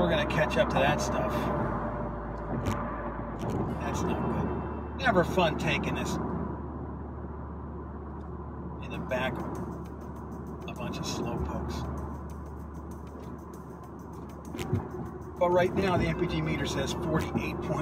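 A turbocharged four-cylinder hatchback cruises on a highway, heard from inside the cabin with steady road noise.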